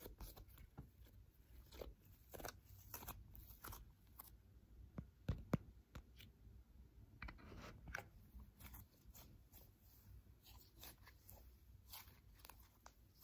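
Soft slime squishes and crackles close up between fingers.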